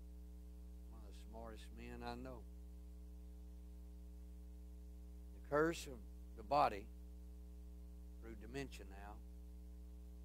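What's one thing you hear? A man speaks in short bursts through a microphone and loudspeakers in a large room.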